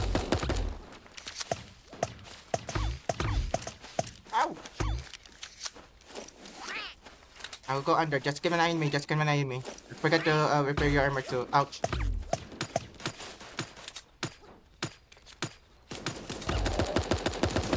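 Small video game guns fire in quick bursts.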